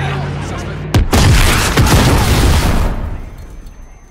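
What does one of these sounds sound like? A loud explosion bursts and roars.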